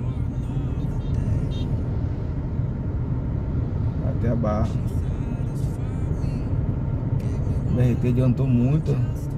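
A car engine hums steadily while driving in slow traffic.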